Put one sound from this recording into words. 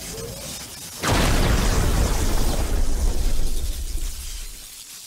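Electricity crackles with a deep rumbling burst.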